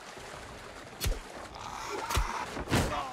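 A blade strikes with sharp impacts.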